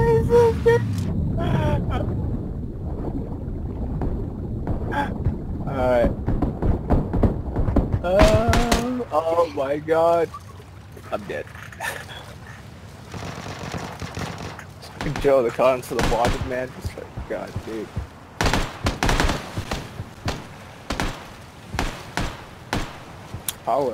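Water swishes and churns as a swimmer strokes underwater.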